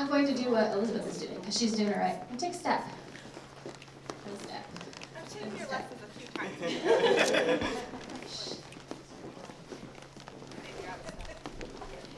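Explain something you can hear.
A group of adults talks and laughs in a large room.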